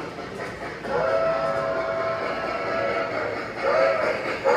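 A model steam locomotive whistle sounds in loud steady tones.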